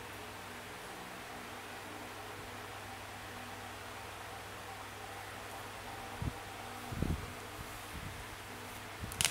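A mobile game plays soft, steady sound effects through a small speaker.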